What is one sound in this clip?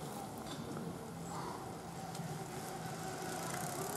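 A bicycle rolls past on a paved road.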